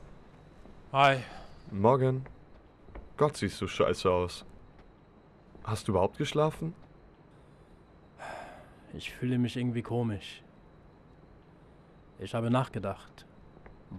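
A man talks calmly.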